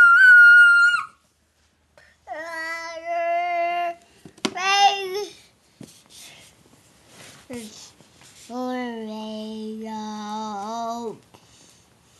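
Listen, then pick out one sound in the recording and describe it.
A toddler babbles and squeals in high, sing-song tones close by.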